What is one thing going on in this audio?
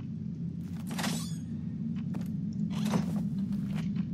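Small cardboard boxes rattle as a hand picks them up.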